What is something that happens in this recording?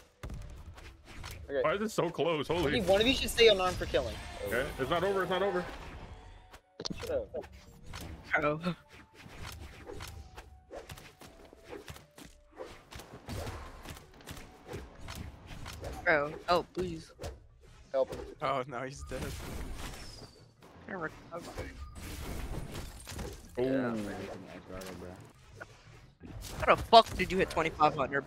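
Game fighters clash with sharp hits and whooshes.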